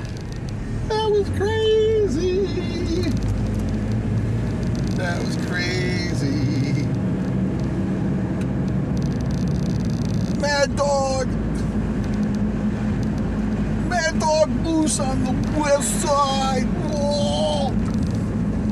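A middle-aged man talks casually close by.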